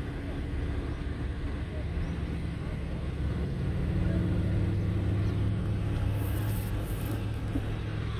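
A motorcycle engine runs nearby on the road.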